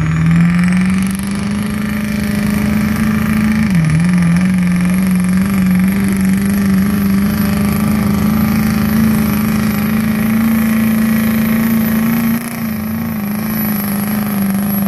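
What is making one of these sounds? A diesel engine roars loudly and steadily, straining under load.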